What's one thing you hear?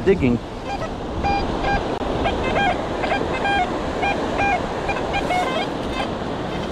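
A metal detector beeps in short, repeated electronic tones.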